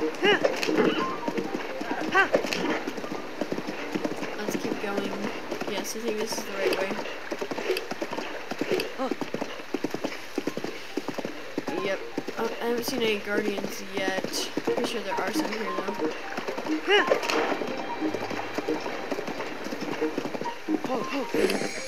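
A horse gallops with hooves thudding on the ground.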